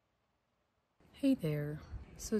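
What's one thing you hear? A young woman speaks close to the microphone, with animation.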